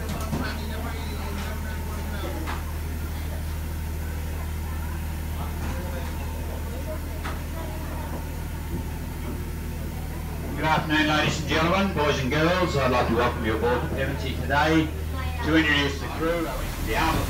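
A large steam engine runs with a steady low hum.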